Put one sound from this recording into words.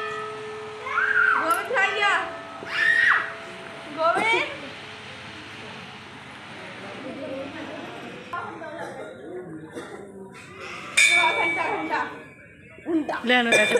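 Women and children talk nearby.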